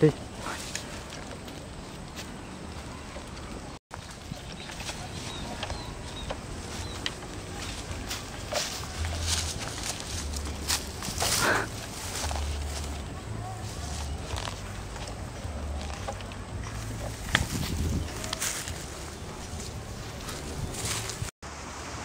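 Footsteps crunch on dry leaves and brush.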